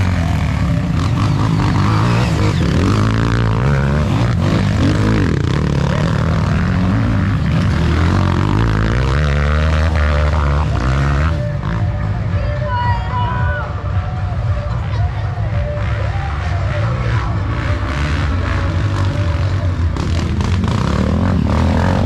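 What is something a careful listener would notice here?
Dirt bike engines roar and rev loudly up close.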